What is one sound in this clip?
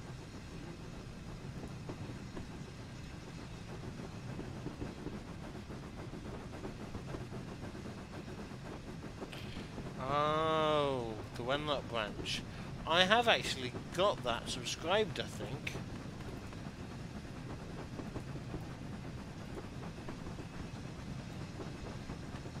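A steam locomotive chugs steadily.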